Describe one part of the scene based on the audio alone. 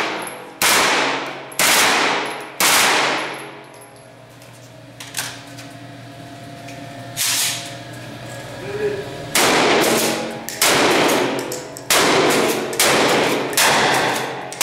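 Loud gunshots boom and echo in an enclosed space.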